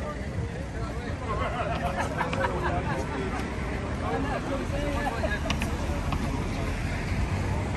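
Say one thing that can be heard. A group of adults chatter with animation close by.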